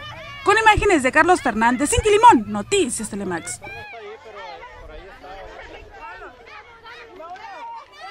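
Several young people chatter softly in the background.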